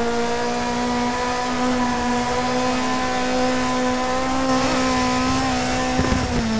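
A rally car engine roars at a steady high pitch as it speeds along.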